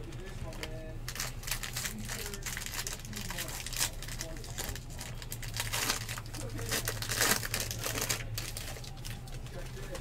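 A foil pack crinkles as it is torn open.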